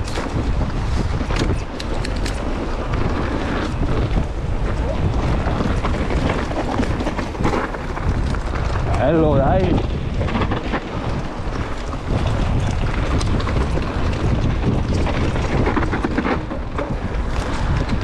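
Bike tyres rumble and crunch over a rough dirt trail.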